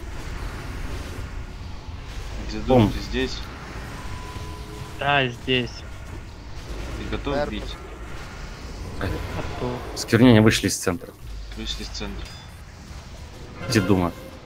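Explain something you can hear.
Magic spells whoosh and crackle.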